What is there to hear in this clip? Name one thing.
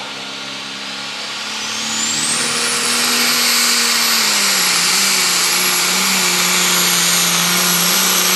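A tractor engine revs up to a loud, high roar with a rising whine.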